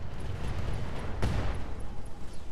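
Laser weapons fire with a harsh buzzing blast.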